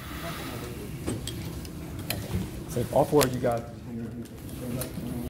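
Objects knock and click close by.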